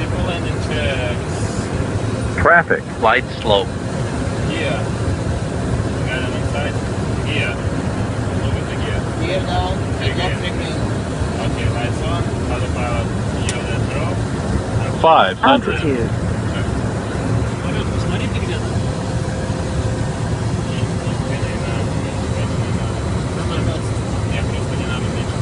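An aircraft engine drones steadily from inside the cabin.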